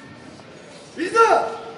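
A man shouts out loudly in a large echoing hall.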